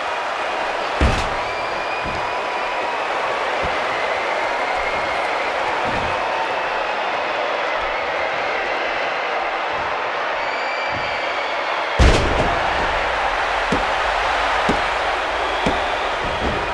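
Bodies slam hard onto a wrestling ring mat with loud thuds.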